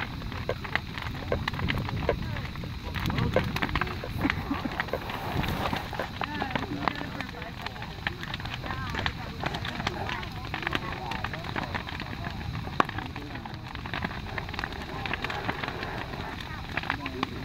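Burning wood crackles and pops sharply.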